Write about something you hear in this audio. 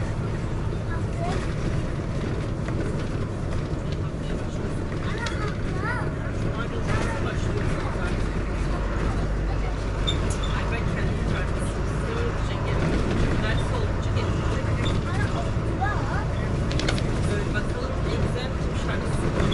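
A bus engine rumbles steadily while driving along a road.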